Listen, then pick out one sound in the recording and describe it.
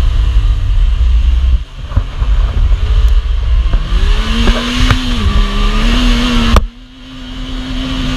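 An off-road buggy engine revs and roars close by.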